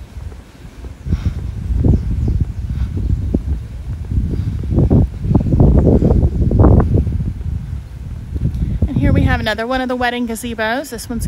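Wind gusts and buffets loudly outdoors.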